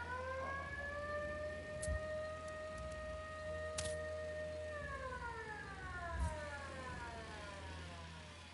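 A small drone's motors whine steadily, then slide down in pitch and fade.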